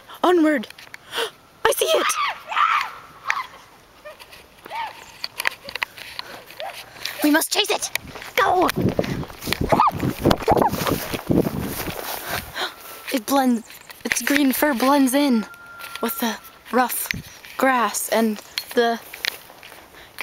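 A young girl calls out excitedly close by.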